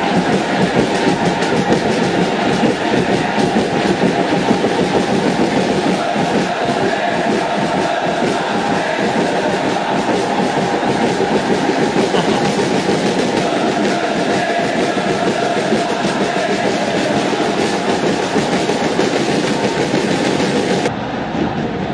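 A large stadium crowd chants and sings loudly through a loudspeaker.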